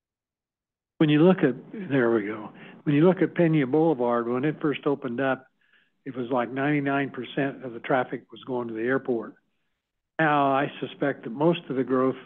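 A man speaks calmly into a microphone, heard through an online call.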